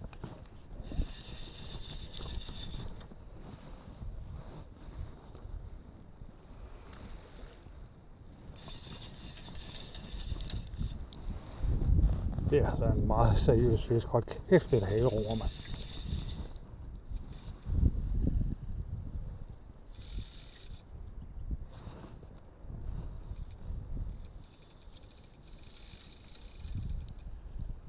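A fishing reel's ratchet clicks quickly as its handle is wound.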